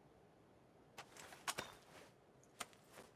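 A gun clicks and rattles as it is handled.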